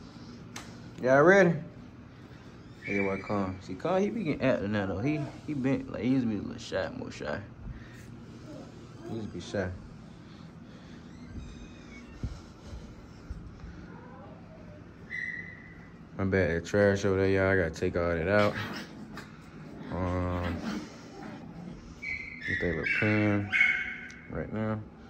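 Puppies whine and yelp close by.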